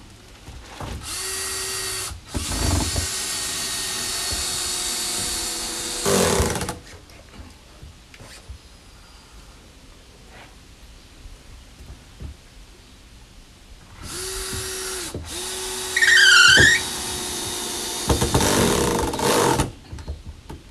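A cordless drill whirs in bursts as it drives screws into wood.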